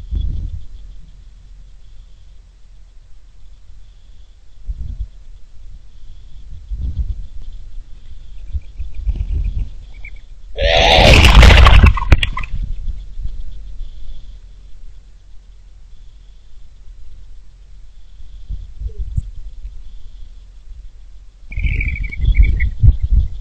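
Wind gusts rumble against the microphone outdoors.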